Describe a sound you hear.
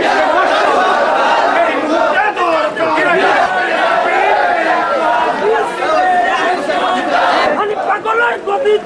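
A large crowd of men chants slogans loudly outdoors.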